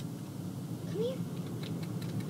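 A dog whines softly.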